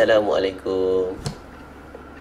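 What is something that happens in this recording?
A young man speaks briefly into a microphone, close by.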